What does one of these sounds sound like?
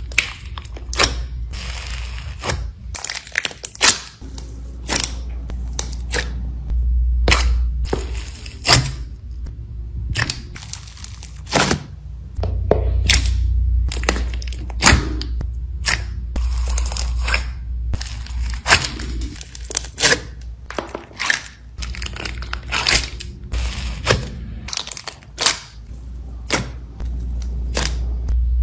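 A metal scoop scrapes and crunches through crumbly material.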